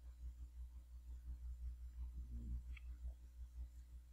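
A soft menu click sounds as a selection changes.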